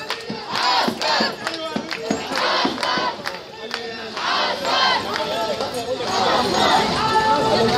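Hands clap sharply in the crowd.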